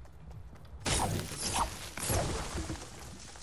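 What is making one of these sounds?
A pickaxe smashes through wood.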